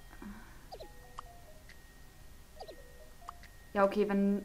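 Short electronic game blips and chirps sound.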